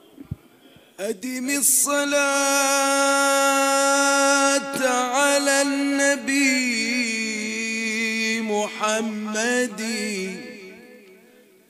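A man chants loudly into a microphone in a melodic, drawn-out voice.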